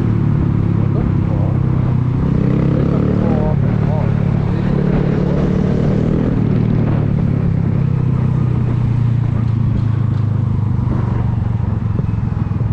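Wind rushes over the microphone as the motorcycle moves.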